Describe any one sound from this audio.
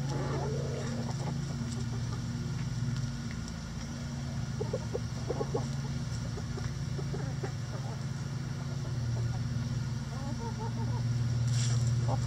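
Hens cluck softly nearby.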